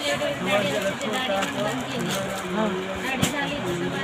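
A plastic wrapper rustles and crinkles.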